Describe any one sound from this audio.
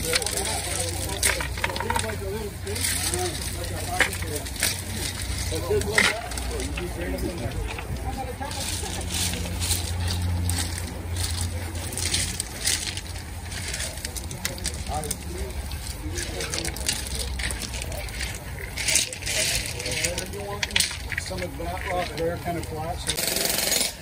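Pebbles clatter and scrape as hands move them.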